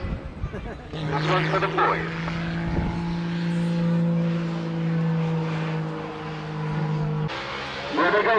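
A drifting car's engine roars at a steady high pitch in the distance.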